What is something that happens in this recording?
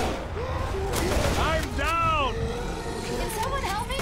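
A large monster roars loudly.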